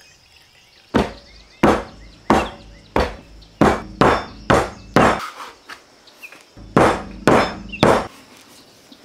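A dough scraper chops sharply through butter on a wooden board.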